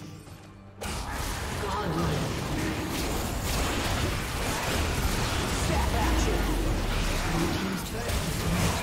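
Video game battle effects clash, zap and crackle.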